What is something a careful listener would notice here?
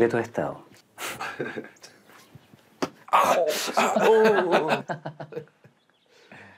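A man speaks with amusement.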